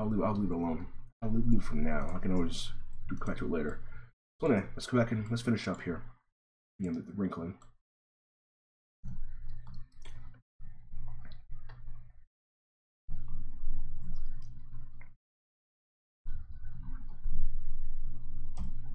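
A man talks calmly into a close microphone, pausing now and then.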